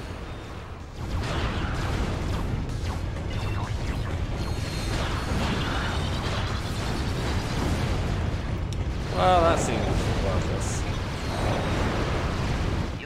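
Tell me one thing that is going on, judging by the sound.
Gunfire and blasts roar from a video game.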